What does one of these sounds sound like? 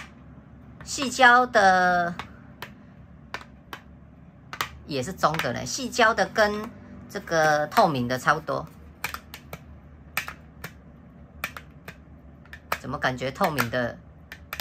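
A magnetic charger snaps onto a plastic phone case with a click.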